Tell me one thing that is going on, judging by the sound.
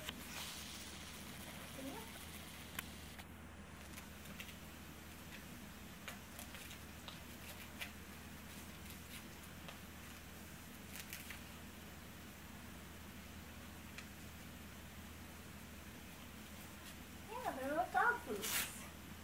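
Fabric rustles softly as clothing is pulled onto a small dog.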